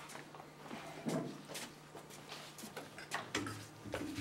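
Footsteps shuffle across the floor.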